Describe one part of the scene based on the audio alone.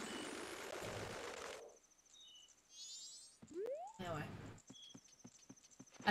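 A video game plays short chimes and whooshing sound effects.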